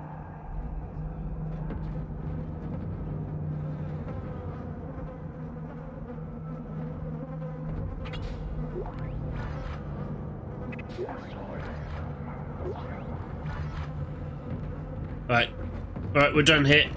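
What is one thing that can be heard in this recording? A low, steady eerie drone hums throughout.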